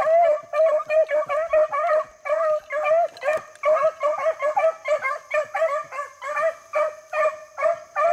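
Dogs bay and yelp rapidly close by.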